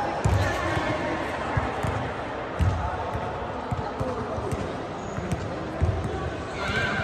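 Sneakers squeak and thud on a hard court floor.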